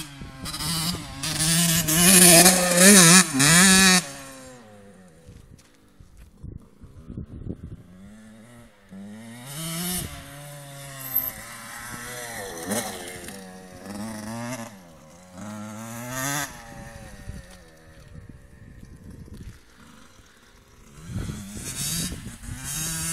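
A motorbike engine revs loudly, its pitch rising and falling as the motorbike rides away and comes back.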